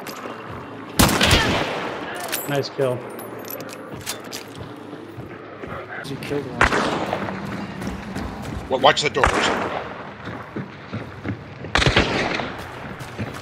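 Heavy gunshots boom and echo at intervals.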